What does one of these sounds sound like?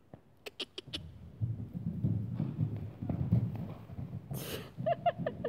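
A horse's hooves thud as the horse gallops and bucks on sand.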